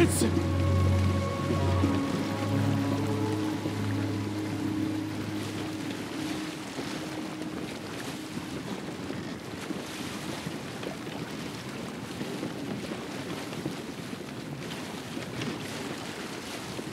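Water splashes and rushes against the hull of a moving boat.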